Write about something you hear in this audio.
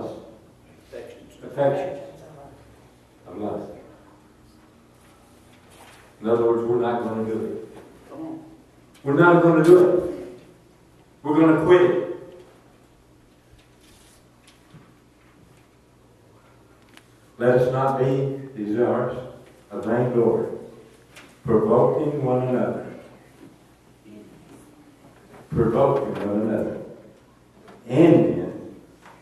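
An elderly man speaks with feeling through a microphone, in bursts with pauses, in an echoing room.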